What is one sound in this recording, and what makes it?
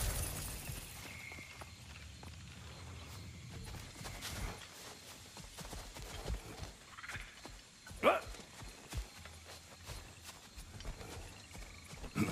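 Footsteps crunch softly on forest ground.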